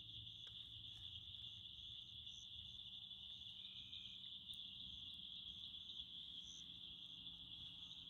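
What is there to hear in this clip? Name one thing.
A small stove fire burns with a low, soft rumble.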